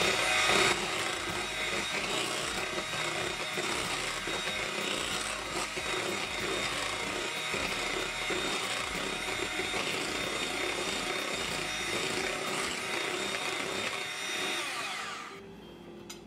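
An electric hand mixer whirs steadily as its beaters whisk batter.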